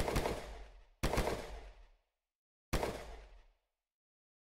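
A pistol fires sharp shots that echo briefly.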